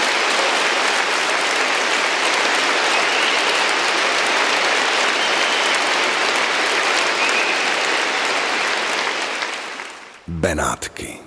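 A large audience applauds loudly in a big echoing hall.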